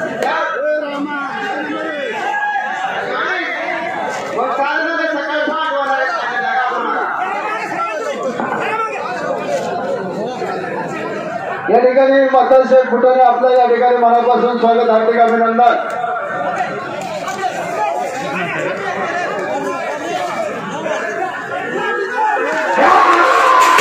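A crowd of men shout and talk excitedly close by.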